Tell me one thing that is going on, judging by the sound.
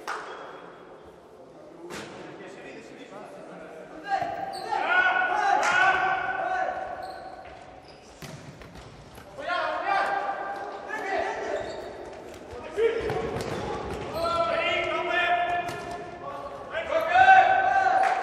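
A ball thuds against players' feet in an echoing indoor hall.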